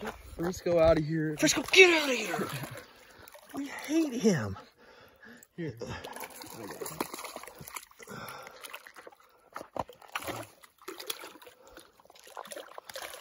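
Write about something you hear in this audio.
Water laps gently against stones nearby.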